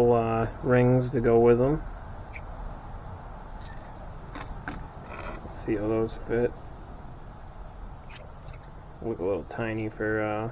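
Small metal parts click and clink as they are handled.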